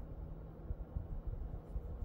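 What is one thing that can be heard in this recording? A hand rubs a dog's fur.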